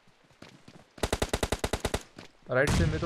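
Rapid gunshots fire in a quick burst.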